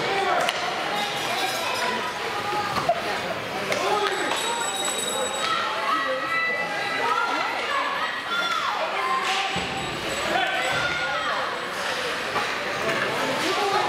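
Young players shout and call out across the ice.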